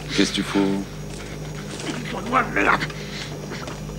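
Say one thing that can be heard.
A young man moans and groans, muffled and close.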